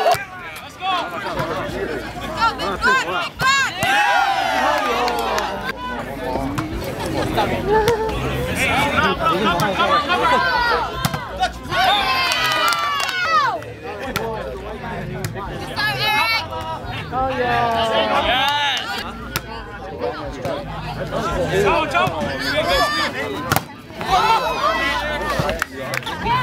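A crowd of young men and women cheers and shouts loudly outdoors.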